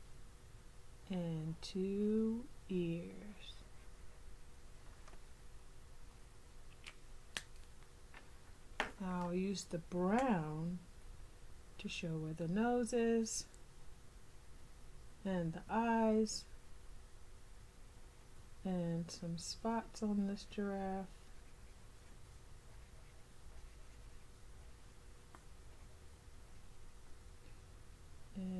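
A felt-tip marker squeaks and scratches softly across paper.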